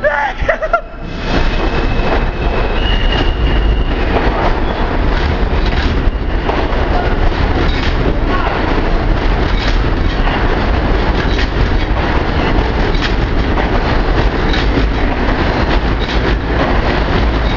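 A subway train roars past close by, its wheels clattering.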